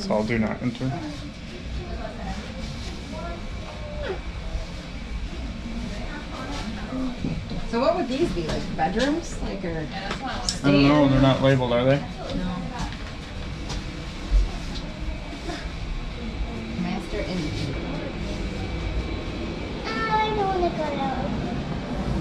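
A young child talks nearby.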